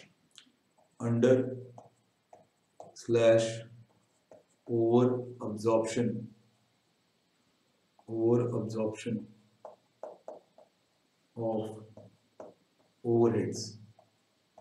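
A young man speaks calmly and close to a microphone, with pauses.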